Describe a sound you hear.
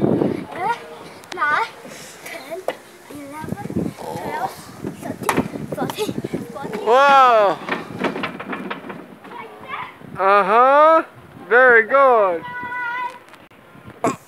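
A young child squeals and calls out in a high voice nearby.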